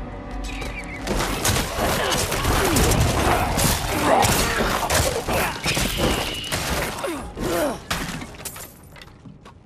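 Game combat sounds clash and thud as a fighter strikes at skeleton enemies.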